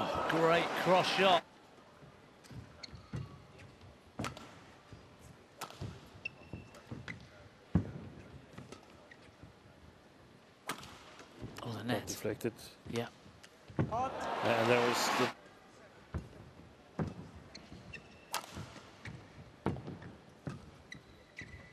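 A shuttlecock is struck back and forth with sharp racket hits in a large echoing hall.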